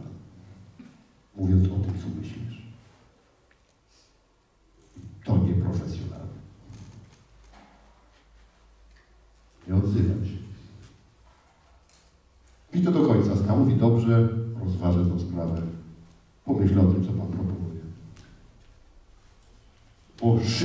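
A man speaks with animation in bursts through a microphone in a large echoing hall.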